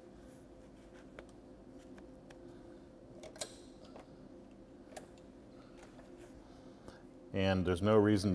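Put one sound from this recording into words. A sewing machine runs with a steady hum and needle ticking.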